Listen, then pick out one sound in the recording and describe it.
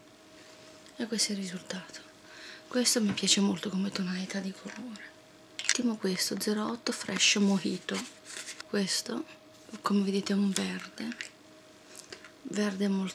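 A young woman speaks close by, calmly and with pauses.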